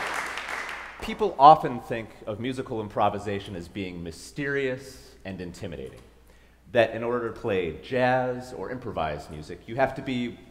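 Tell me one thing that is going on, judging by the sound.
A young man speaks calmly into a microphone to an audience.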